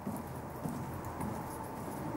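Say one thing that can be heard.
Footsteps thud softly on a wooden deck.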